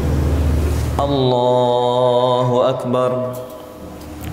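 A young man chants a long, drawn-out melodic call close to a microphone.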